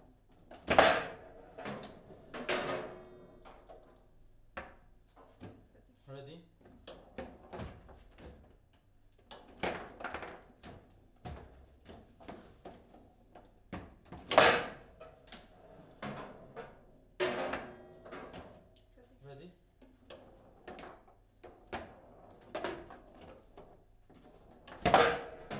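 Metal rods rattle and clack as players spin them.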